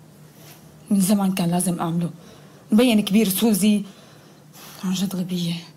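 A young woman speaks calmly and firmly close by.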